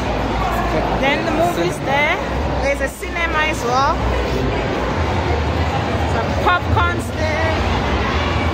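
Men and women talk loudly nearby.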